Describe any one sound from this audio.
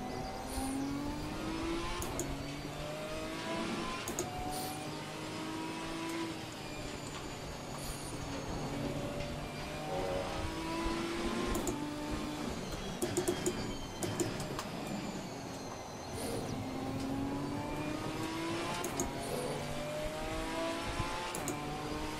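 A racing car engine revs high and changes gear through the whole run.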